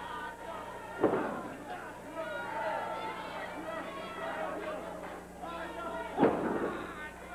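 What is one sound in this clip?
A heavy thud of a body hitting the ring sounds out.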